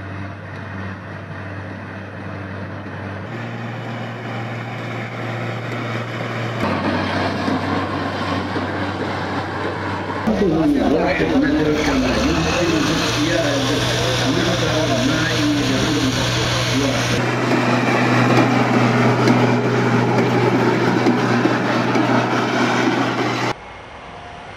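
The diesel engine of an eight-wheeled armoured vehicle labours as the vehicle climbs a slope.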